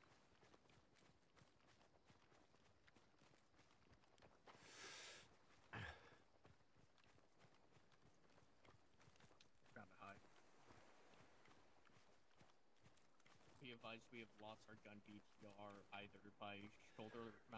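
Footsteps swish steadily through grass.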